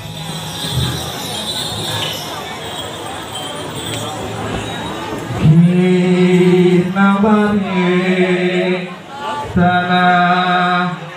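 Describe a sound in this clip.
A large crowd murmurs and chatters nearby.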